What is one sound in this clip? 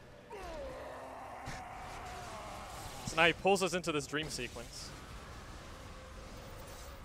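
A magical blast whooshes and hums.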